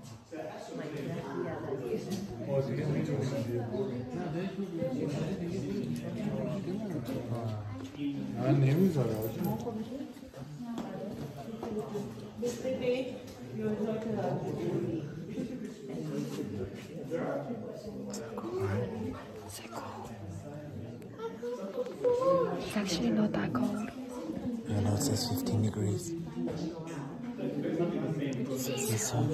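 A man talks and laughs close by.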